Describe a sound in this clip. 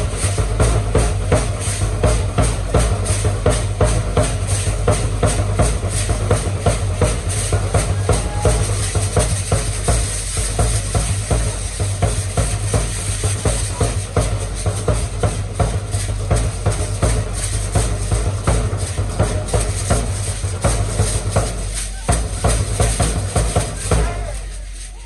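Dancers' feet stamp on the dirt ground.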